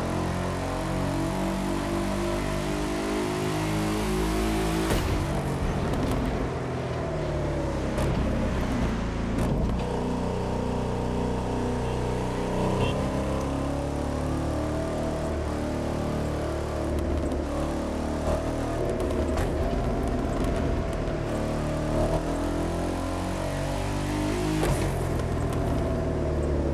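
A car engine roars steadily, rising and falling in pitch as gears shift.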